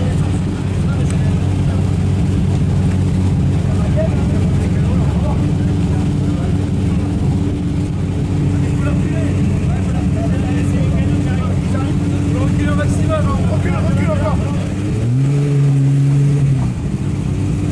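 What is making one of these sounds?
Rally car engines idle with a low steady rumble nearby.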